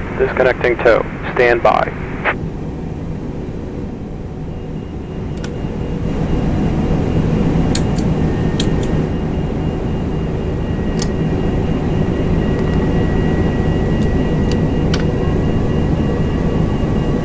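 Jet engines rumble steadily, growing louder.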